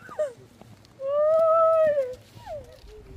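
A woman wails in a long, mournful cry.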